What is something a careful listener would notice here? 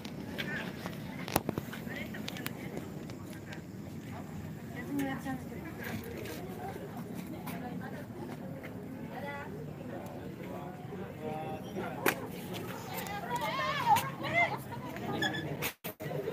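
Young women chat and laugh nearby.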